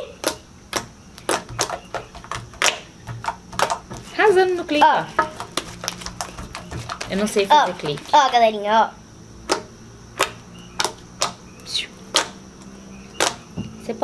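Slime squelches and pops as hands press it.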